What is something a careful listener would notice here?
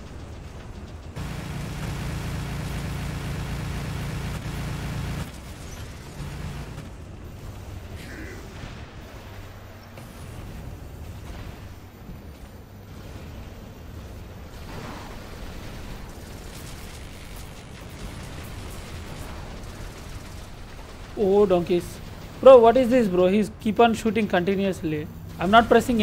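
Large metal robot footsteps clank and thud.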